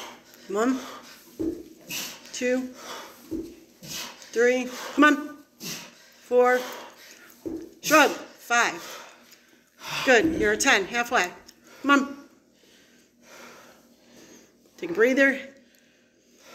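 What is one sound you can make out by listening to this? A middle-aged man talks breathlessly.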